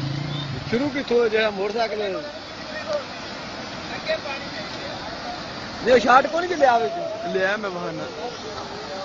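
Men talk loudly nearby.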